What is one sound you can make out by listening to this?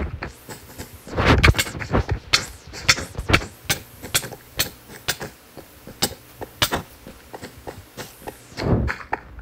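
Sharp game hit sounds land again and again during a fight.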